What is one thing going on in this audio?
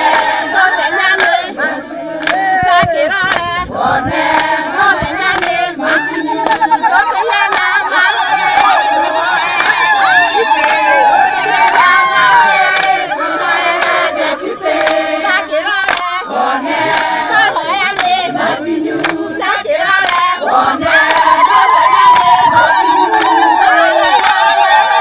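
A crowd of women and men sing loudly together outdoors.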